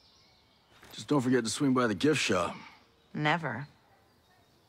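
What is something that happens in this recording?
A man speaks casually and close by.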